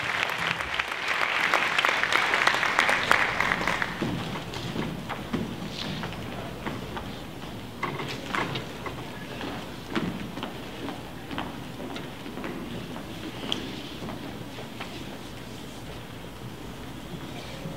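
Footsteps shuffle and tap across a wooden stage.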